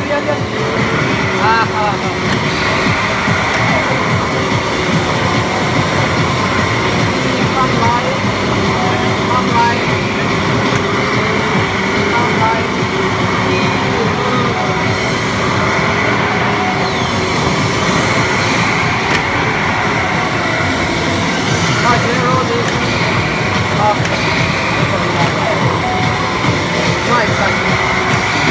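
A racing game's car engine roars at high speed from a loudspeaker.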